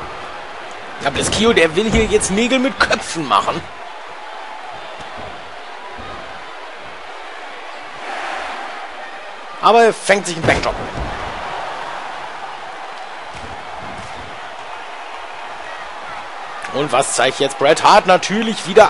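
A large crowd cheers steadily in an echoing arena.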